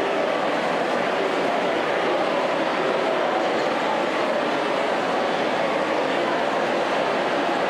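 A large crowd shouts and cheers loudly in a reverberant hall.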